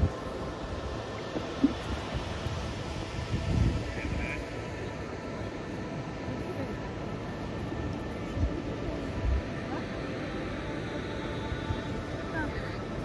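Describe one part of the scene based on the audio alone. Wind buffets a microphone outdoors in gusts.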